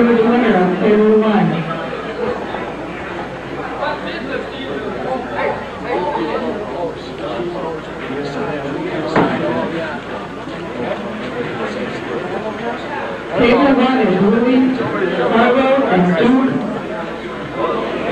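A man gives instructions loudly nearby.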